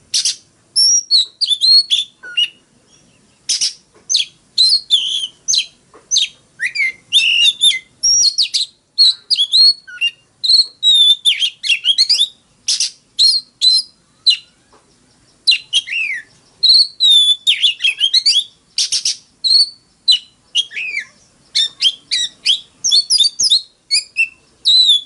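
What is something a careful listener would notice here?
A songbird sings loud, varied whistles and chirps close by.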